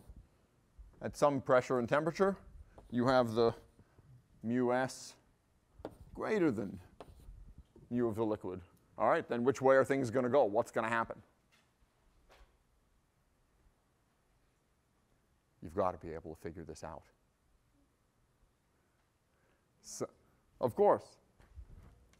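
A man speaks calmly through a microphone, lecturing.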